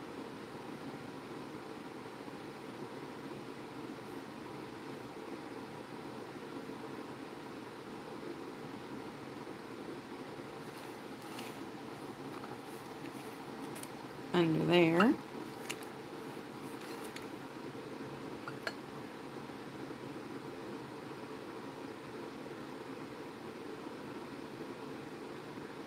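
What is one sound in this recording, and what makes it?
A small paintbrush strokes softly across a tile.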